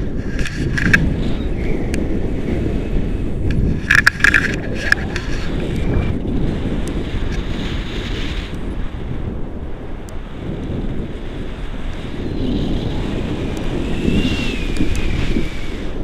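Wind rushes and buffets a microphone.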